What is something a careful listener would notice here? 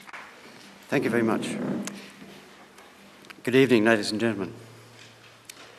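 A man speaks calmly and briefly into a microphone.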